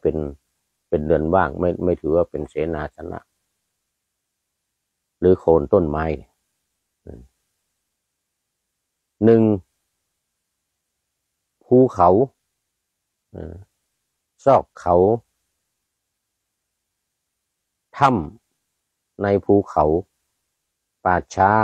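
An elderly man speaks calmly and slowly, close to a microphone, with long pauses.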